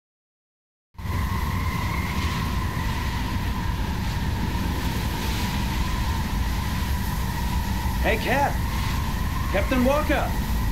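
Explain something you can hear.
Wind blows steadily across open sand.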